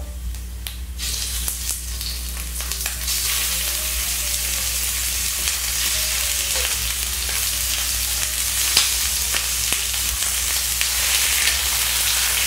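Meat hits hot oil and sizzles loudly.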